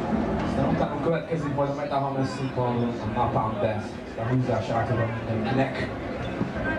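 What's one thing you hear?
A young man talks with animation into a microphone over loudspeakers.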